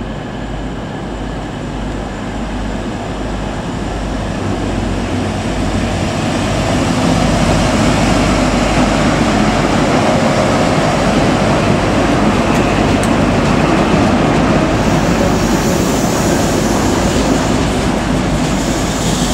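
Train wheels rumble and clatter over the rails.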